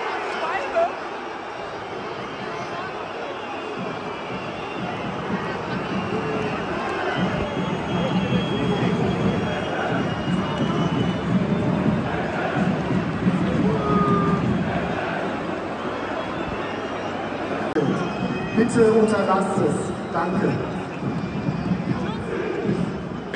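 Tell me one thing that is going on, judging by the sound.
A large stadium crowd chants and roars loudly outdoors.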